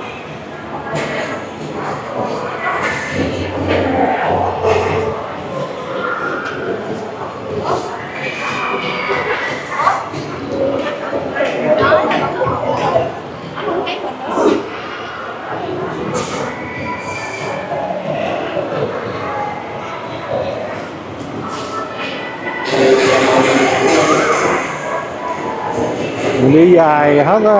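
Many people talk and murmur all around in a large echoing hall.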